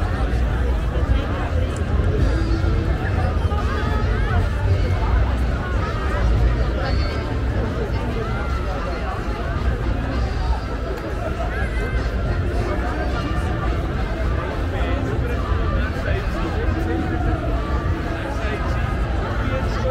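A large outdoor crowd chatters and murmurs all around.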